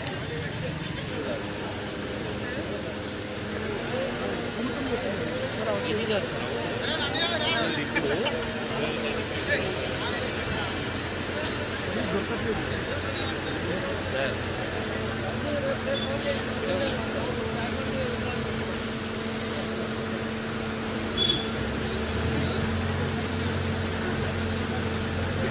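A crowd of men shouts and talks outdoors.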